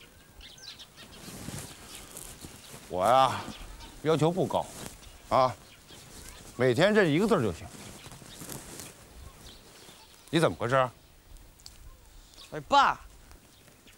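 A woman talks outdoors.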